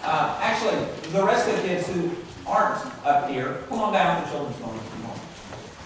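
A man speaks into a microphone in a large, echoing room.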